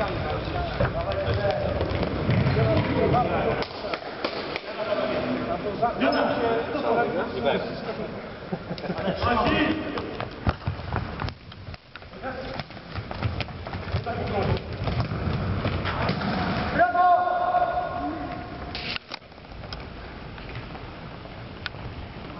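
Young men shout and call out to each other in a large echoing hall.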